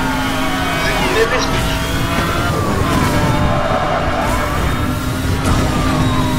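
A sports car engine roars loudly at high speed.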